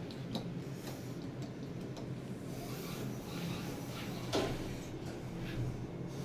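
A machine-room-less traction elevator hums as the car travels.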